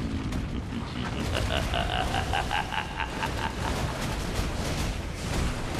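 Magical blasts crackle and whoosh as a fighter attacks.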